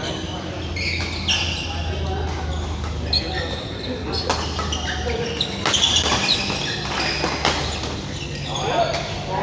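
Men call out across a large echoing hall.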